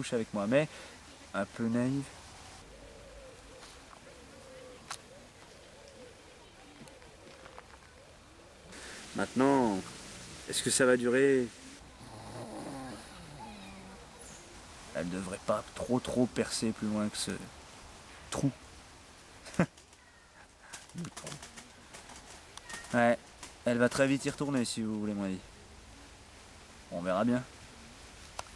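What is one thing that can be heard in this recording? A young man talks close by, in short bursts with pauses.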